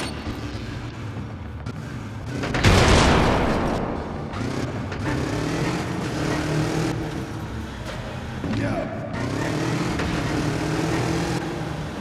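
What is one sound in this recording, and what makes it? A motorcycle engine revs and hums.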